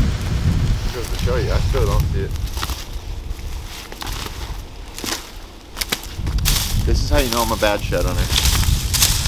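A man speaks calmly, close by, outdoors.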